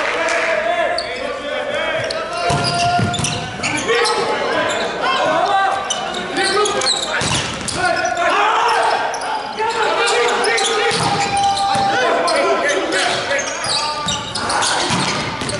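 A volleyball is struck hard with a loud slap.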